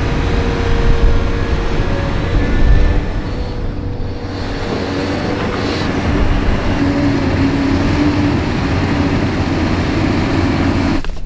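A heavy excavator engine rumbles steadily nearby.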